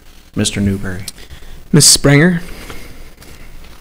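A man speaks briefly through a microphone in a large room.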